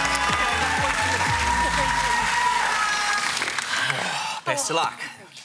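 A studio audience applauds and cheers.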